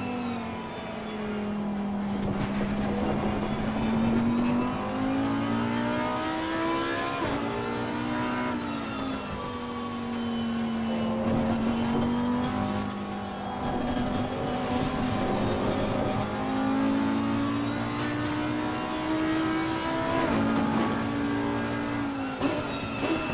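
A V10 racing car engine revs hard, shifting up and down through the gears.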